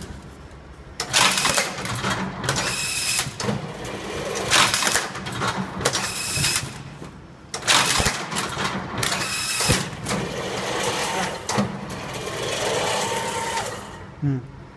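A machine pulls plastic straps tight in loud, sudden whirring bursts.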